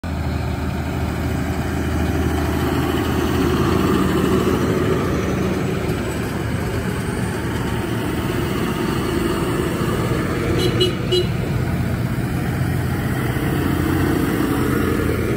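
Tractor engines rumble loudly as they drive past close by, one after another.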